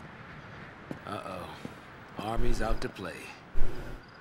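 A man with a deep voice speaks in a wry tone.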